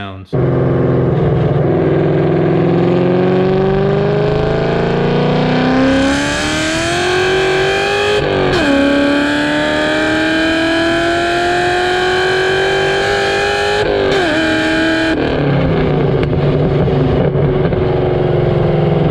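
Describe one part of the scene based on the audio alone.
A car engine roars loudly through its exhaust, rising in pitch as it accelerates through the gears.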